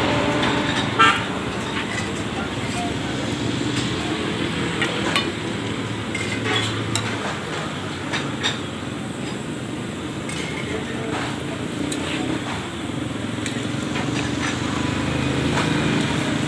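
Metal utensils clink and scrape against a pan and a hot griddle.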